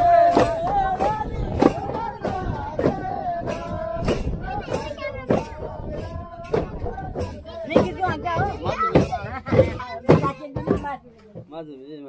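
A hand drum beats a steady rhythm.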